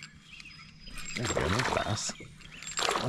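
A paddle splashes and swishes through water close by.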